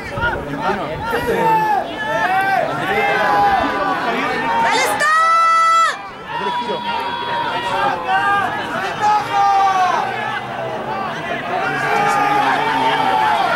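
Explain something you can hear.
Men shout and call out outdoors over a field.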